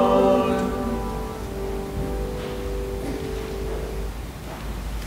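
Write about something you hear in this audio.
A piano plays softly and fades out.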